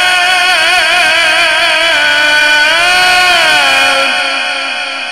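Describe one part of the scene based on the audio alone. A middle-aged man chants loudly and melodically through a microphone, with a long echo fading after each phrase.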